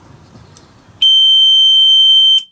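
An alarm gives a loud, steady, high-pitched tone.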